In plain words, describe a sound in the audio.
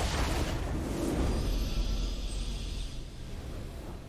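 A victory fanfare sounds.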